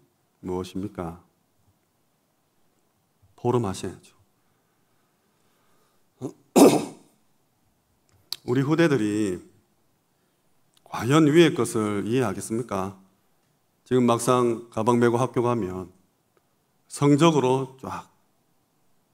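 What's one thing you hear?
A young man speaks calmly into a microphone, in short phrases with pauses.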